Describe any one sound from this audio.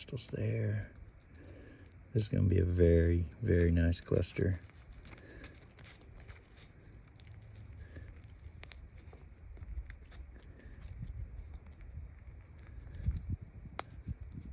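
Gloved hands scrape and crumble loose, gritty soil close by.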